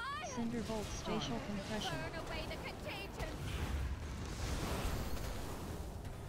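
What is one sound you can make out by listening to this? Fiery magic spells whoosh and burst.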